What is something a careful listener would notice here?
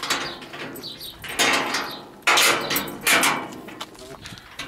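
A metal gate creaks and scrapes as it swings open.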